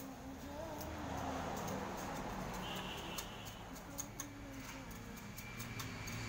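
A trowel taps and scrapes against bricks and mortar.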